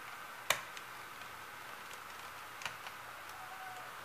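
A small screwdriver clicks as it turns tiny screws in metal.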